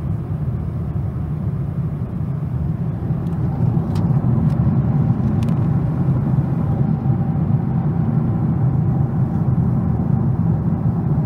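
A jet airliner's engines roar in a low, steady drone from inside the cabin.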